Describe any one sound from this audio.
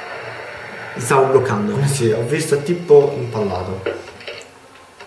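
Two young men talk with animation close to a microphone.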